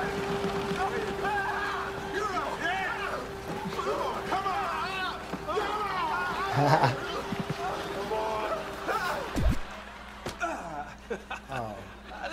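A man speaks with animation, heard through a loudspeaker.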